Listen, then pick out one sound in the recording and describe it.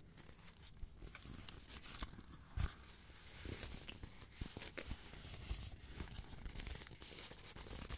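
Fingers scratch and rub across cardboard close to the microphone.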